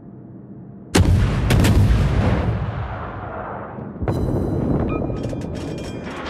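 Heavy naval guns fire with deep, booming blasts that rumble away.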